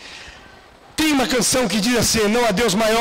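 An older man speaks emphatically through a microphone.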